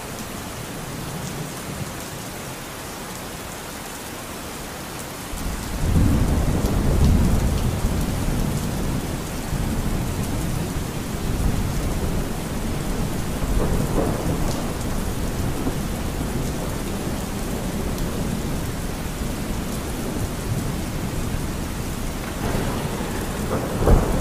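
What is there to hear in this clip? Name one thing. A river rushes and splashes over rocks.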